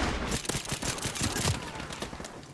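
Muffled gunshots fire in a quick burst.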